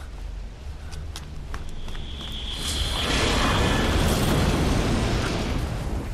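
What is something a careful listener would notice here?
An armoured vehicle's engine rumbles deeply and grows louder.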